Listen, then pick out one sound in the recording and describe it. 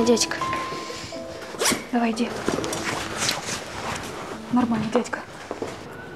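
A woman speaks calmly up close.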